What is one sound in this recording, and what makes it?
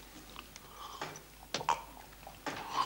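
A man sips noisily from a glass.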